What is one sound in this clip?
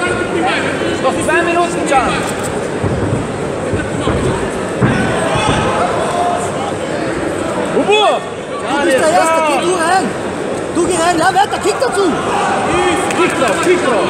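A crowd shouts and cheers throughout in a large echoing hall.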